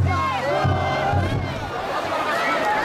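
A man sings loudly close by.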